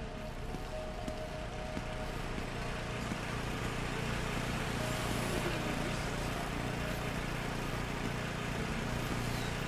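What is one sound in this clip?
A generator hums steadily nearby.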